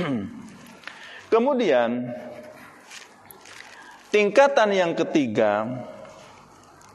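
A man chants in a melodic voice through a microphone, in a reverberant room.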